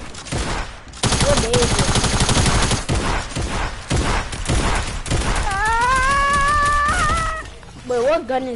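Gunshots crack rapidly in quick bursts.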